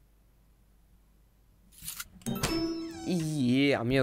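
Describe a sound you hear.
A wooden lid creaks open.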